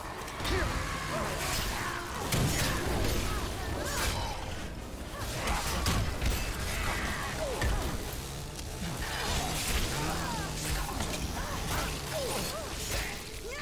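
A sword swings and strikes with sharp hits.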